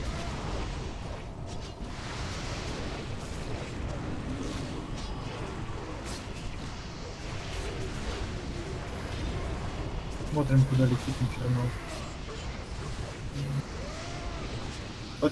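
Magic spells crackle and burst in quick succession.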